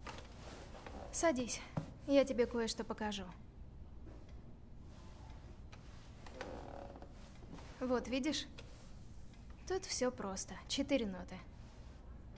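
A woman speaks warmly and calmly nearby.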